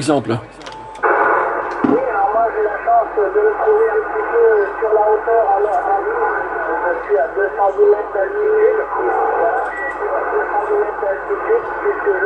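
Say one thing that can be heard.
Radio static hisses steadily under the talk.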